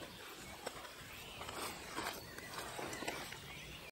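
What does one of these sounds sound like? A rolled fabric rustles as a man handles it.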